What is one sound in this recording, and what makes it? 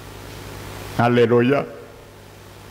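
A middle-aged man speaks briefly through a headset microphone and loudspeaker.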